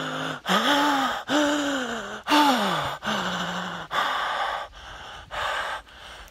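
A man speaks loudly and with animation close to the microphone.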